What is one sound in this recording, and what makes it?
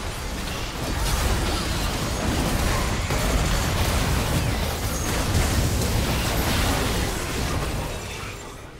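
Magic blasts boom with deep rumbling impacts.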